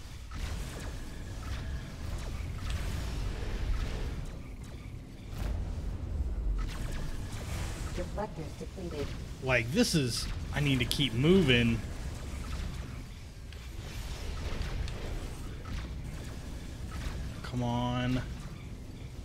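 Laser weapons fire in quick bursts.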